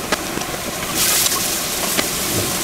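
Mushrooms tip into a pan with a loud hiss.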